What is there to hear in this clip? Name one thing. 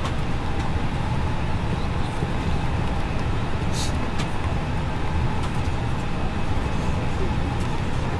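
Jet engines roar steadily with a low rumble.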